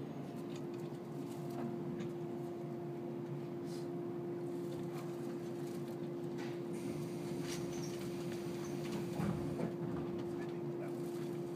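A steady electric whine drones inside a train car.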